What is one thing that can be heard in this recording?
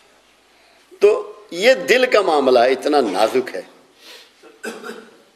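An elderly man speaks with feeling, close to a microphone.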